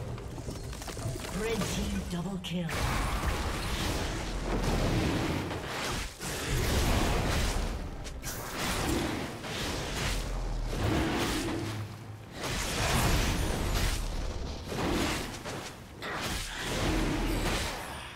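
Game spells and attacks crackle and whoosh in a fast fight.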